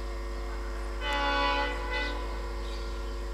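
A locomotive sounds its horn in two short blasts.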